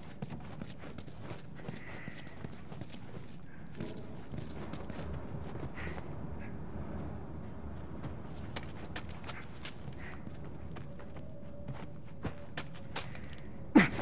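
Footsteps crunch slowly over debris on a hard floor.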